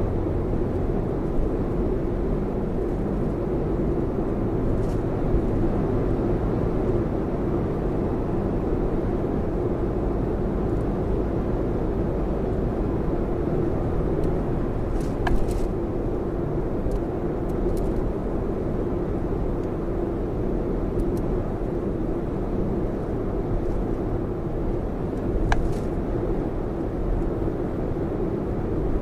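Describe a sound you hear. Tyres roll steadily on a smooth highway.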